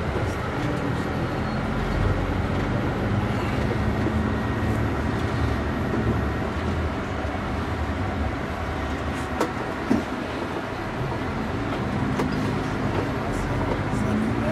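A bus engine hums steadily as it drives along a road.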